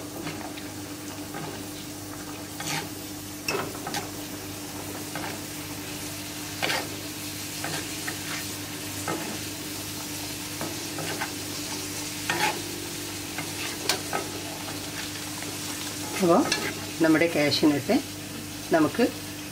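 Hot oil sizzles steadily.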